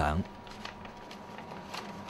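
Paper rustles as pages are leafed through.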